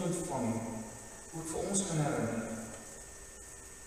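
An elderly man speaks slowly into a microphone in an echoing hall.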